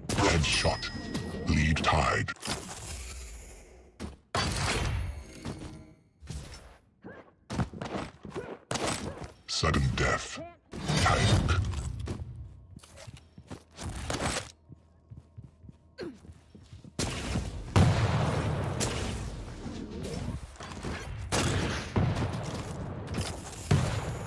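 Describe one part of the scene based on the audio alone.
Game weapons fire in loud bursts and blasts.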